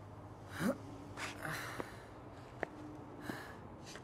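A man's footsteps walk on a hard floor.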